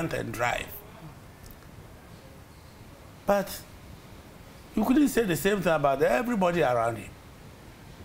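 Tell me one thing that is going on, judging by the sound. An elderly man speaks calmly into a close microphone, in short phrases.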